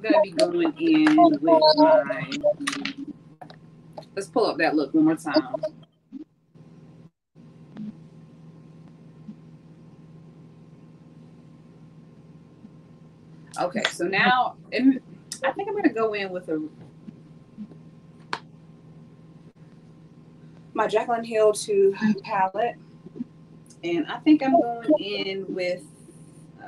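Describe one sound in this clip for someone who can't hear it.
Two young women talk with animation over an online call.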